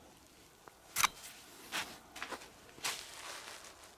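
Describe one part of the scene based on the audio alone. A walking pole taps on frozen, snowy ground.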